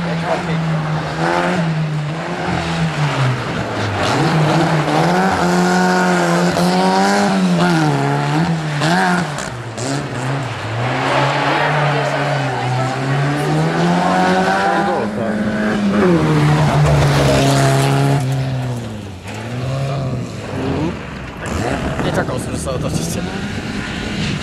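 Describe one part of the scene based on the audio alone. A rear-engined Škoda saloon rally car revs hard through the gears.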